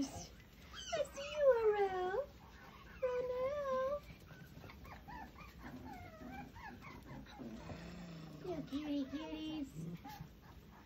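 Puppies whine and yelp in high, gliding cries.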